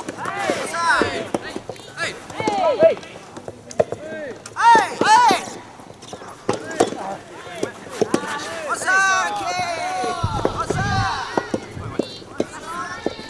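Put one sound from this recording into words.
Tennis rackets strike a soft rubber ball.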